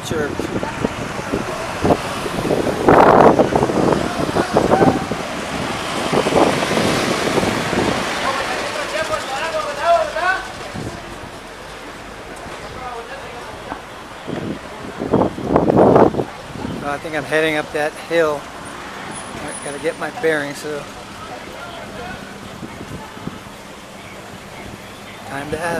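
Traffic drives past on a busy street outdoors.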